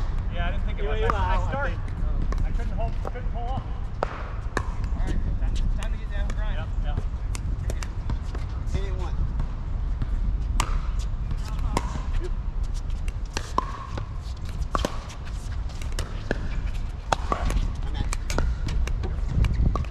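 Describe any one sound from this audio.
Paddles hit a plastic ball with sharp hollow pops.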